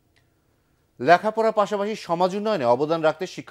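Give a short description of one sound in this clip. A man reads out the news clearly through a close microphone.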